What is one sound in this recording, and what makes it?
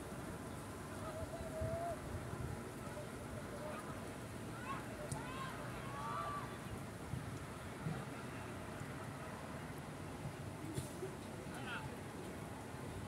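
Players shout to each other from a distance across an open field outdoors.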